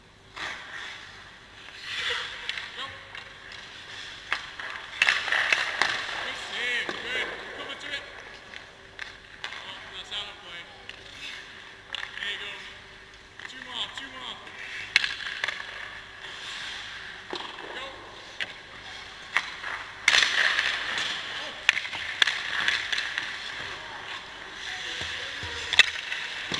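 Hockey sticks knock and click against pucks, echoing in a large hall.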